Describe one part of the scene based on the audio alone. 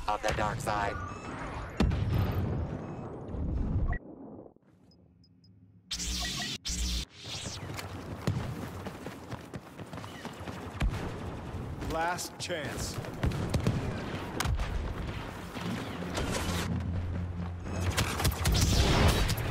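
Explosions boom and rumble in a video game battle.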